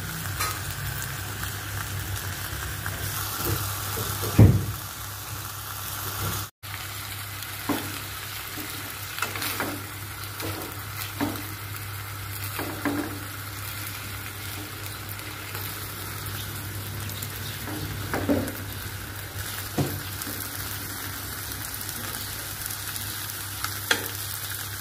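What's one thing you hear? Meat sizzles steadily in a hot frying pan.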